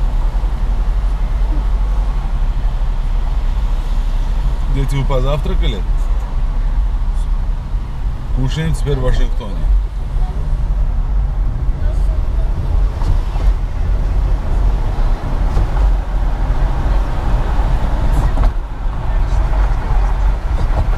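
A car engine hums steadily, with tyres rumbling on the road, heard from inside the car.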